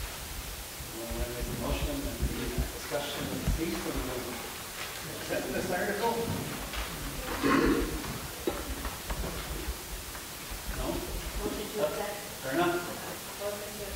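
A man speaks into a microphone at a podium, heard over a loudspeaker in an echoing hall.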